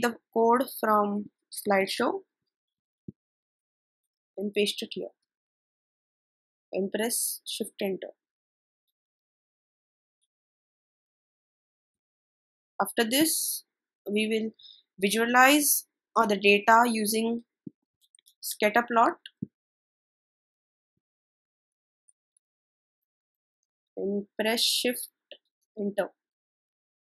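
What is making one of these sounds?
A teenage boy speaks calmly into a close microphone, in short phrases with pauses.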